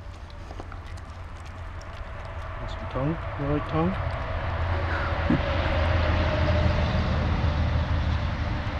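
A dog sniffs closely.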